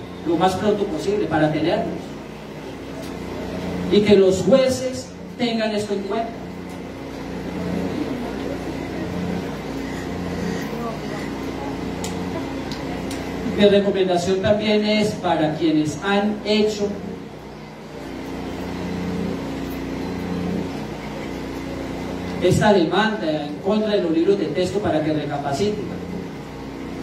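A man speaks through a microphone and loudspeakers in bursts, in a calm, lecturing tone.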